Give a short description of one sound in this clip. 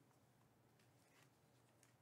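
Trading cards rustle and click as a hand handles them.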